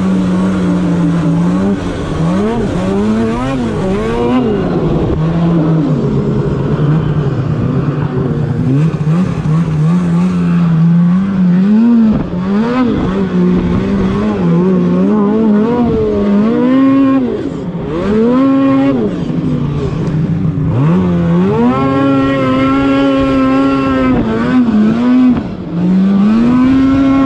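A snowmobile engine drones up close, revving up and down as it rides.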